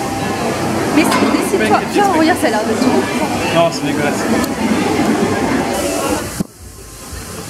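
A crowd chatters in a busy room.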